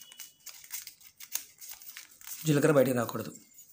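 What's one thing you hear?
Paper rustles and crinkles softly as it is folded.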